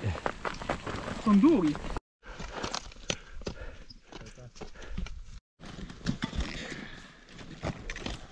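Boots crunch steadily on snow and loose stones.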